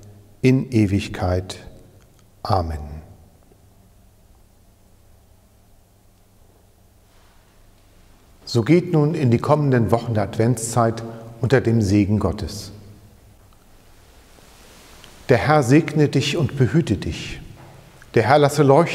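A middle-aged man speaks solemnly and calmly into a nearby microphone, in a softly echoing room.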